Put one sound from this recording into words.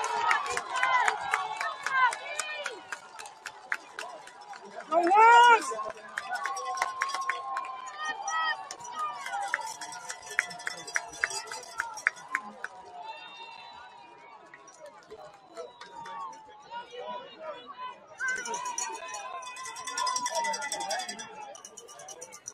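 Young men on a sideline shout and call out to each other.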